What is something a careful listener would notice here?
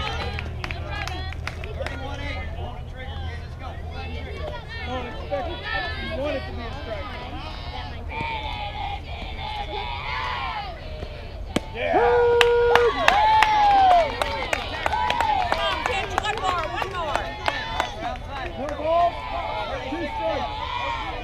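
Girls shout and cheer across an open field.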